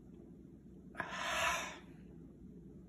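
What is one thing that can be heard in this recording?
A middle-aged man sighs loudly after a drink.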